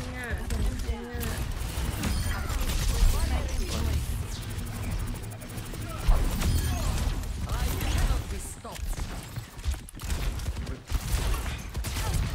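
A heavy energy weapon fires in rapid bursts.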